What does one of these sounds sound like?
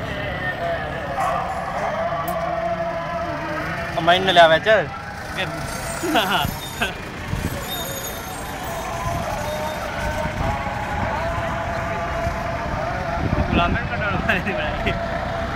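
A line of cars and jeeps drives past slowly, engines humming.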